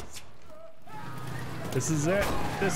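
A fire roars and crackles close by.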